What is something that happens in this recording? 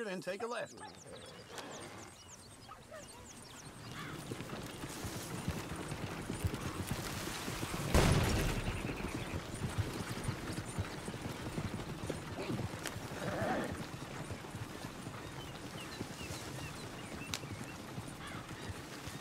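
A wooden wagon rattles and creaks along a dirt track.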